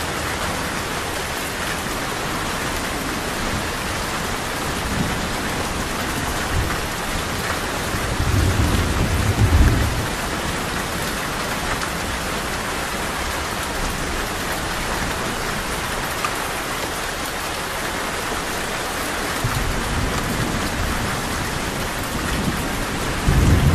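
Heavy rain pours down steadily outdoors.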